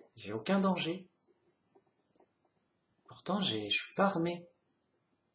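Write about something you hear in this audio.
A man talks calmly and close up, with pauses.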